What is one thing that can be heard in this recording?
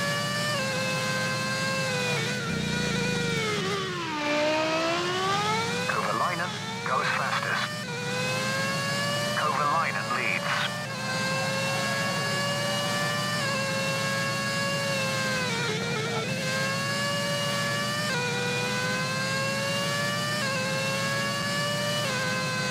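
A racing car engine screams at high revs, dropping in pitch when braking and rising again as it speeds up.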